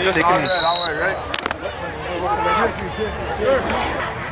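Young men shout and cheer together close by.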